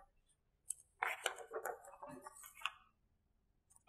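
Paper rustles as cards are pressed onto a board.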